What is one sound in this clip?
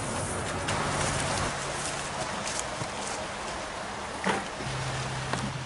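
River water flows and laps nearby.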